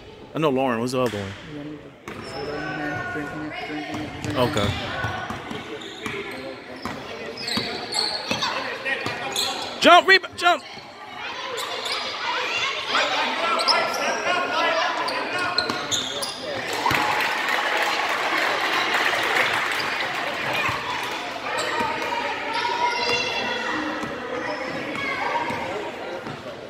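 Spectators cheer and shout in a large echoing gym.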